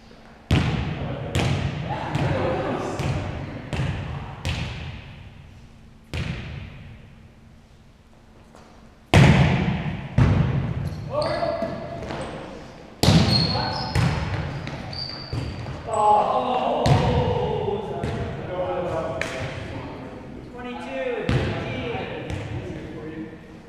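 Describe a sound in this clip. A ball thumps on a wooden floor and against bodies, ringing out in a large echoing hall.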